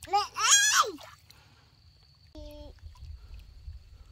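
Small hands splash in shallow water.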